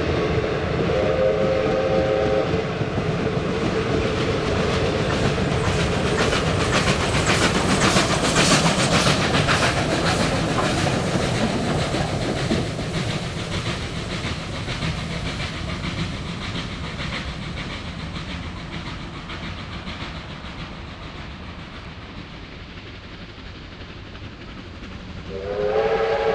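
A steam locomotive chuffs heavily as it passes close by, then fades away.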